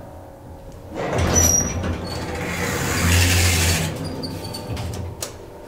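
Elevator doors slide shut with a rumble.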